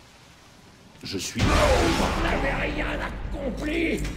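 A magic spell bursts with a bright whooshing shimmer.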